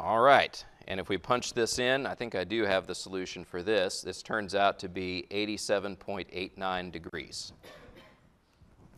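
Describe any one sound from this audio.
A man lectures calmly into a microphone, heard close up.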